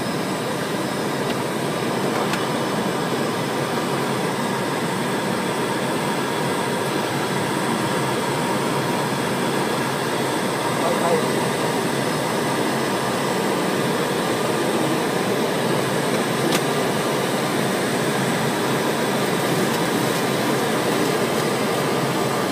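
An aircraft engine roars steadily inside a cabin.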